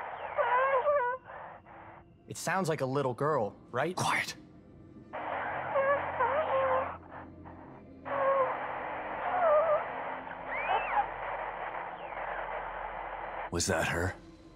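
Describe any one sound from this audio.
A radio hisses and crackles with static.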